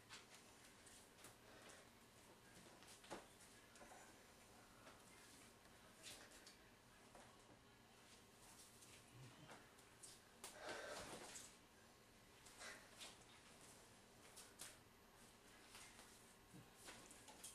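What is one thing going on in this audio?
Bare feet shuffle and slap on a hard floor.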